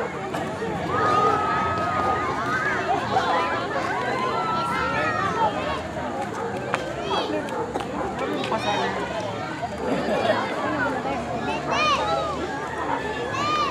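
A group of young women and men chatter and laugh excitedly nearby.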